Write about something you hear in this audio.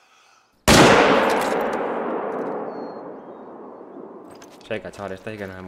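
A rifle fires a single loud shot that echoes and rolls away across open ground.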